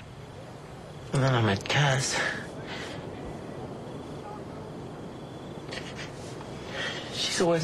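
A man sobs and weeps quietly.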